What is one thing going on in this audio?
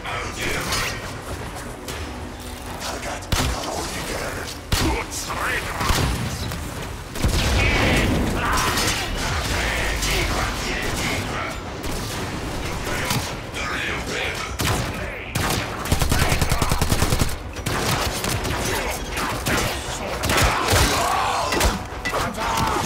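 Gunfire and blasts ring out in bursts.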